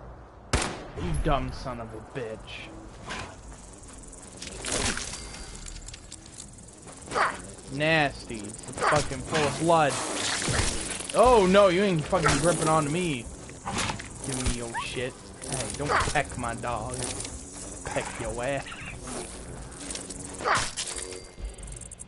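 A young woman talks with animation through a headset microphone.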